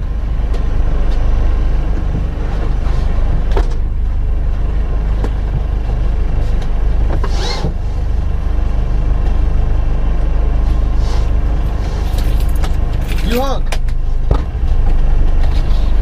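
A car engine idles with a steady low rumble.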